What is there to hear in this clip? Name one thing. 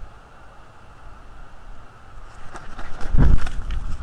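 An eagle's wings flap loudly as it takes off from a branch.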